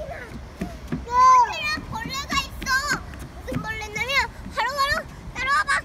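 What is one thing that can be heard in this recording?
A small child squeals and babbles nearby.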